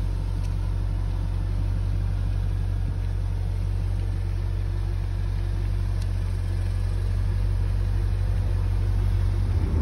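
A sports car's engine idles with a deep, rumbling burble close by.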